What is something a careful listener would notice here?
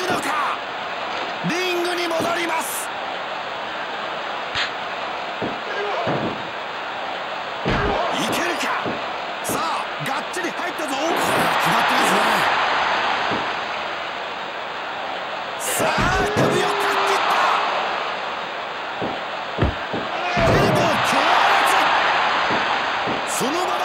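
A crowd cheers loudly throughout.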